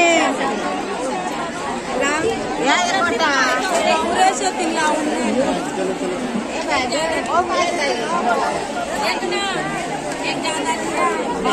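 Many voices of men and women chatter and call out all around, close by.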